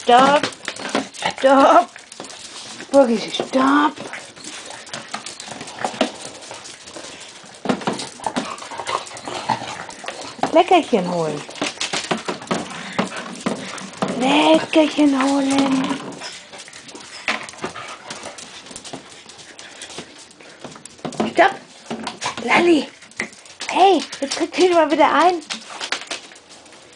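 A dog gnaws and rattles a hard plastic box.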